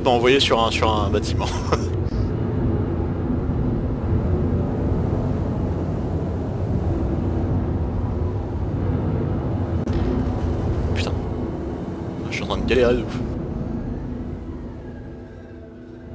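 A spacecraft engine hums low and steady, fading near the end.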